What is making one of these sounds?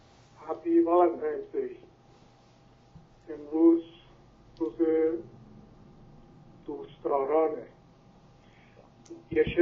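A middle-aged man speaks calmly into a close microphone, in short phrases.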